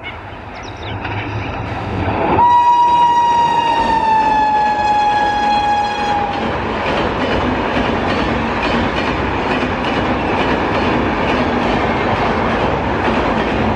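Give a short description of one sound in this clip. A train rumbles and clatters over a bridge, getting louder as it passes.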